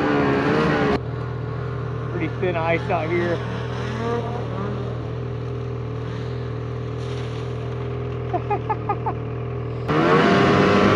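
A snowmobile engine whines far off.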